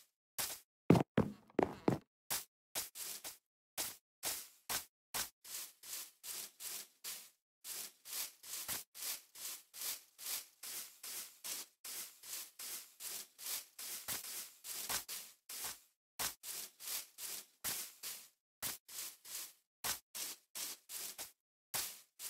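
Footsteps crunch quickly over grass and dirt in a steady walking rhythm.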